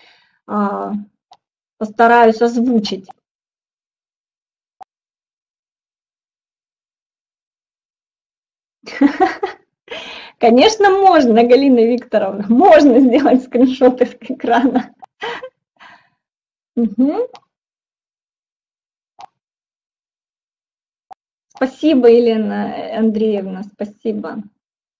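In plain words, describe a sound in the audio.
A middle-aged woman speaks calmly over an online call, with pauses.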